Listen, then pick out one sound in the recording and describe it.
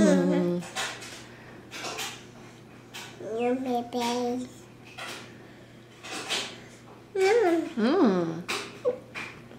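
A toddler babbles and squeals in a high voice close by.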